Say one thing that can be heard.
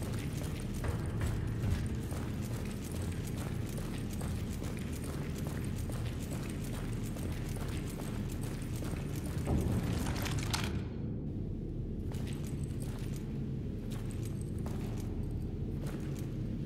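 Boots step on a hard floor.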